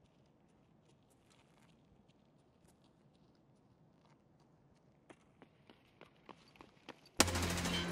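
Footsteps tap softly and steadily on hard ground, growing louder.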